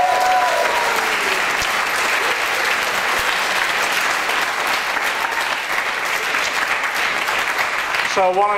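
An older man claps his hands.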